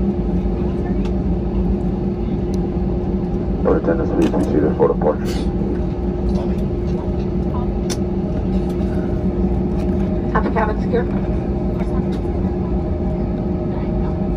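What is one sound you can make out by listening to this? The plane's wheels rumble over the taxiway.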